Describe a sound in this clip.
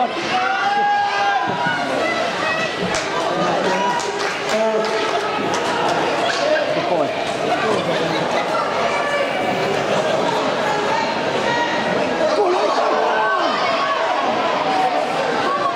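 Hockey sticks clack against a puck on ice.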